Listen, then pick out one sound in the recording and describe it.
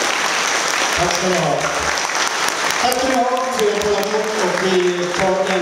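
A man sings through a microphone and loudspeakers.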